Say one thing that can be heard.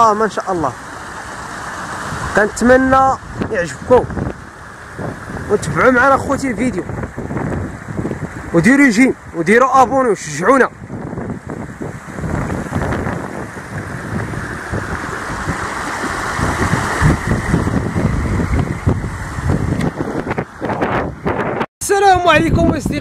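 Muddy water rushes and splashes over rocks.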